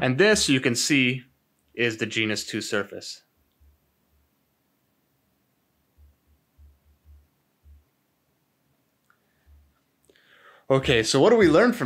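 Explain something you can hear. A man speaks calmly and closely into a microphone, pausing now and then.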